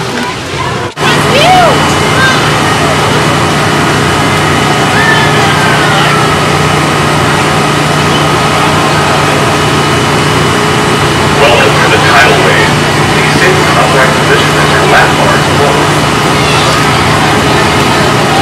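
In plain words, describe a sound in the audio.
An amusement ride's machinery hums steadily.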